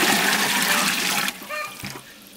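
Water pours from a bucket into a metal pot.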